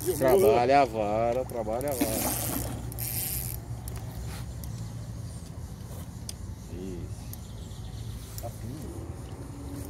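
A fishing reel clicks as it is cranked.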